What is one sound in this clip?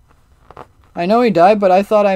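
A young man speaks loudly and with animation, close to a microphone.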